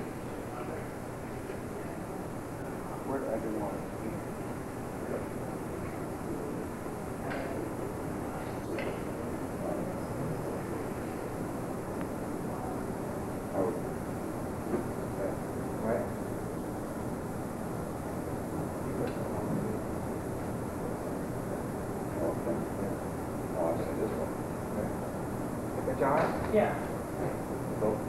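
A man speaks calmly, explaining.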